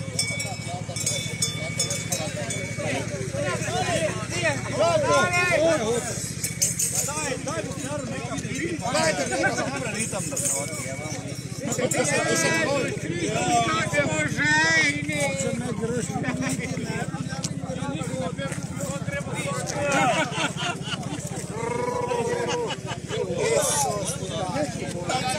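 A band of accordion, fiddle and double bass plays a lively folk tune outdoors.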